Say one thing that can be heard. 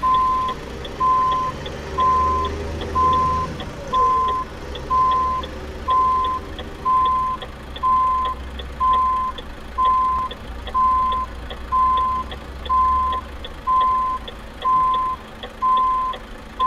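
A truck engine idles with a low rumble as the truck backs up.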